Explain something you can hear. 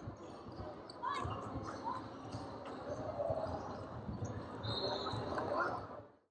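Sneakers squeak on a hard gym floor.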